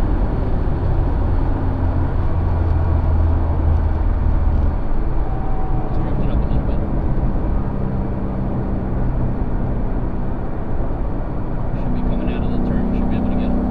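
Wind and tyre noise roar loudly throughout.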